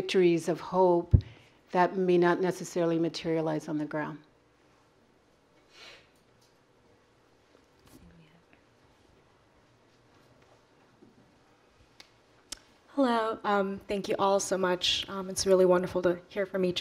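A young woman speaks calmly into a microphone in a room.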